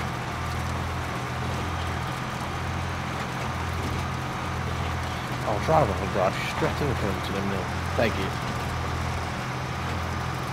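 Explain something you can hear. A truck engine rumbles steadily as the truck drives.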